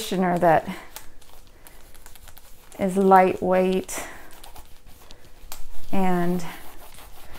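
A cloth rubs softly over leather.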